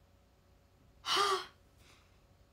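A young woman gasps close by.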